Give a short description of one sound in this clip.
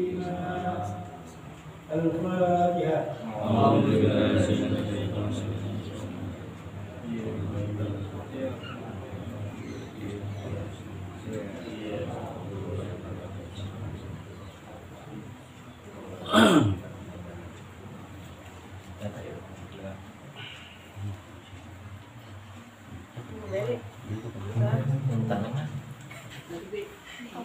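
A young man chants in a melodic voice nearby.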